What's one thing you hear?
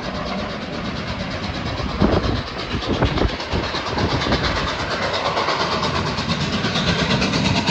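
A freight train rolls past close by with a loud rumble and rhythmic clacking of wheels.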